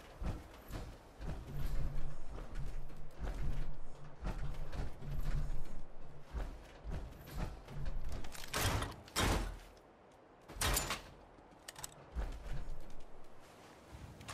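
Heavy metal footsteps clank and thud in a steady rhythm.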